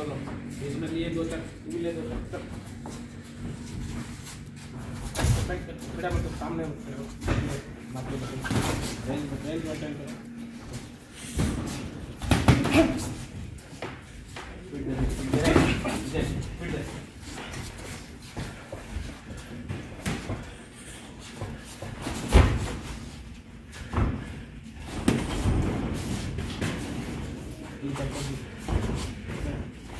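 Boxing gloves thud against each other and against bodies.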